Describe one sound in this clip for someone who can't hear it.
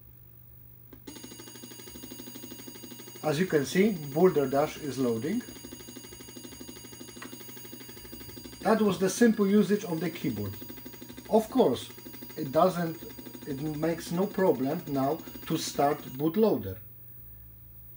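An old monitor switches on and hums with a steady high whine.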